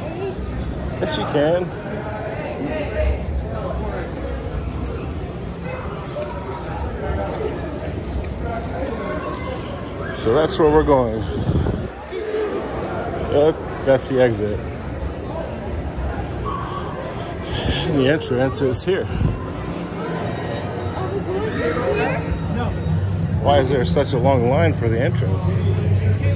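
Many people chatter in a busy indoor space.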